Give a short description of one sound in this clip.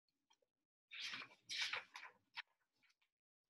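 A book's page turns with a soft rustle.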